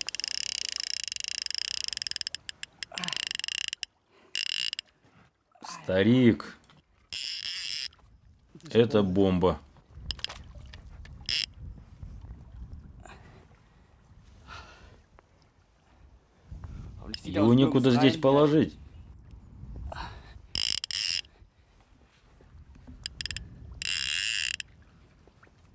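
A fishing reel clicks and buzzes as line runs out.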